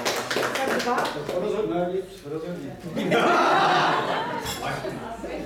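An elderly man laughs nearby.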